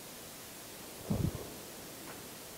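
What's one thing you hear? A chair thumps as a man sits down.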